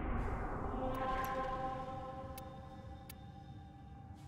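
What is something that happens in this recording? Short interface clicks sound as menu items are chosen.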